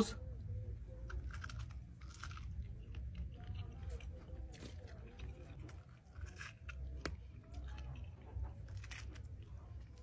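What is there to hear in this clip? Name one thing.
A man crunches and chews loudly on food.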